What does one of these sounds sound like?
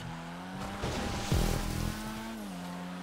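Tyres screech as a car skids.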